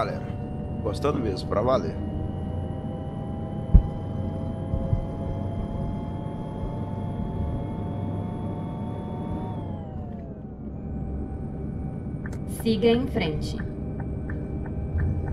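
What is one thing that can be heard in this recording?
A bus engine hums steadily, then drops in pitch as it slows.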